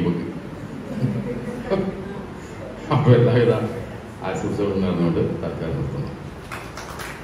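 A middle-aged man speaks with animation into a microphone, heard through a loudspeaker in an echoing room.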